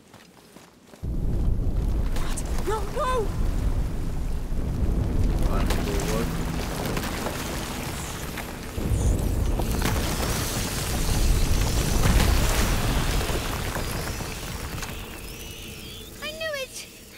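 A deep rumbling roar swells and surges.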